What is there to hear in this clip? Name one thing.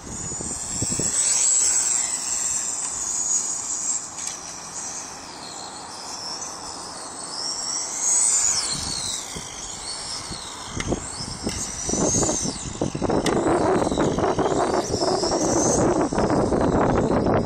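A small electric racing car whines at high pitch as it speeds around a track, rising and falling.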